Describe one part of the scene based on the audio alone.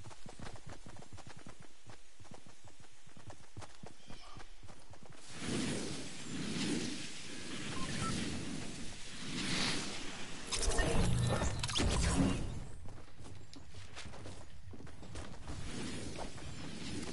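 Footsteps patter quickly on grass and wood.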